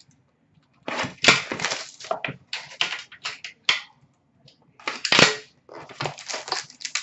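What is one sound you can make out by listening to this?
Cardboard boxes scrape and rustle as hands handle them close by.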